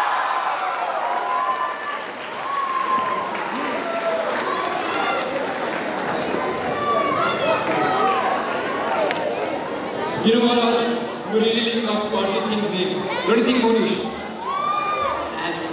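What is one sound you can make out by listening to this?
A large crowd of young people chatters and cheers in a big echoing hall.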